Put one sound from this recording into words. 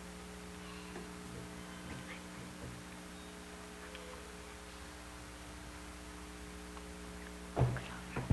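A loudspeaker hums steadily.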